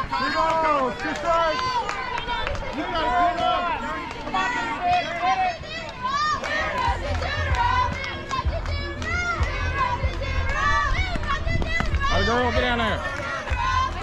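Young women shout and cheer nearby.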